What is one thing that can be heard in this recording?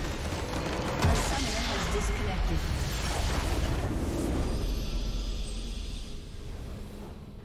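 A crystal structure shatters and collapses with a loud rumbling burst.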